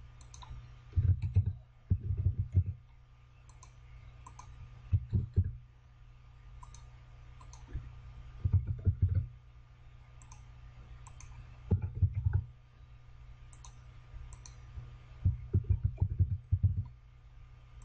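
Keyboard keys clatter in quick bursts of typing.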